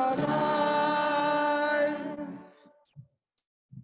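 A choir sings a held chord that fades out.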